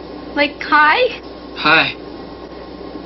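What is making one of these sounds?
A young woman speaks excitedly.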